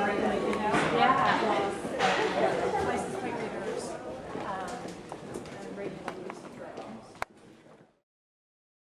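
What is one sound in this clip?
Several adults talk over one another nearby, then fall silent.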